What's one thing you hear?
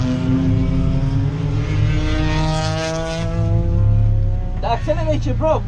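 A race car engine roars loudly from inside the cabin, its pitch climbing as it revs.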